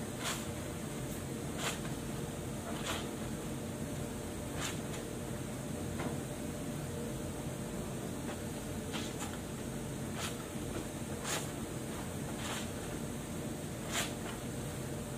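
Wet cloth is scrubbed and squelched by hand.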